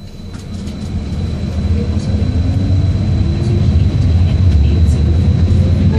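A train's motor whines, rising in pitch as it speeds up.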